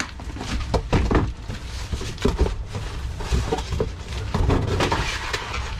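Cardboard boxes scrape and thump as they are shifted.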